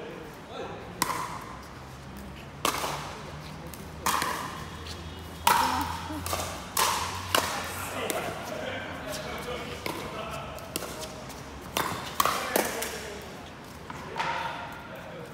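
Paddles strike a plastic ball with sharp pops that echo around a large hall.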